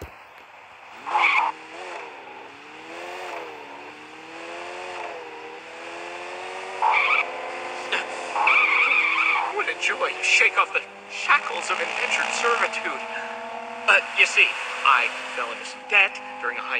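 A car engine starts and revs, its pitch rising and falling as it drives.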